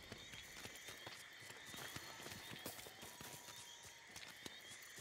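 Footsteps crunch steadily on rough ground.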